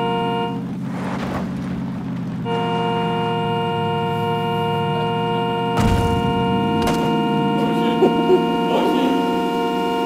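A car engine hums steadily as the car drives over rough ground.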